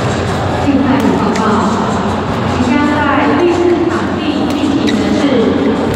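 A shuttlecock is struck sharply with a racket, back and forth.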